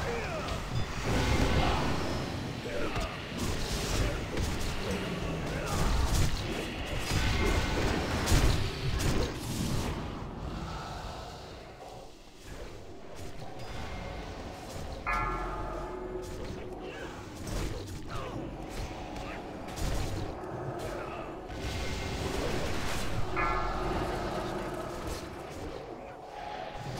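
Magic spells crackle and boom in a busy fantasy battle.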